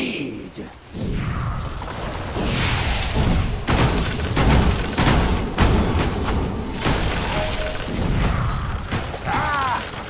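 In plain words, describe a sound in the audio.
Magic blasts and weapon clashes ring out in a busy fight.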